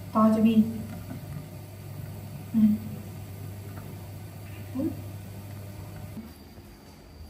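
Water bubbles and boils in a pot.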